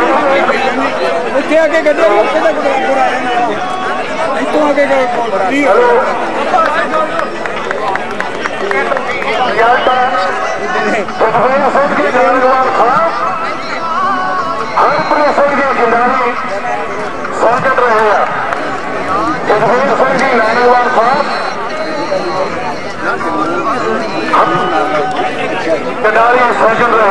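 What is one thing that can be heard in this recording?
A man talks loudly and energetically into a microphone, heard through loudspeakers outdoors.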